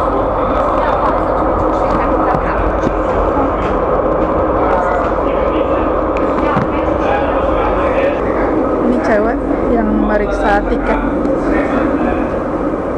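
A tram rumbles steadily as it rolls along.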